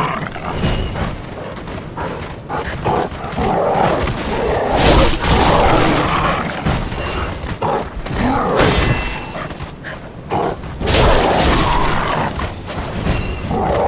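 Wolves snarl and growl close by.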